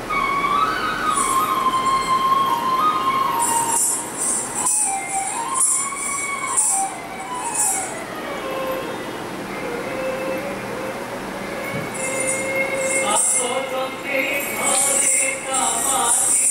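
Ankle bells jingle in bursts as a dancer stamps.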